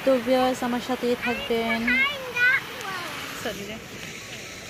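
A small waterfall splashes and gurgles over rocks.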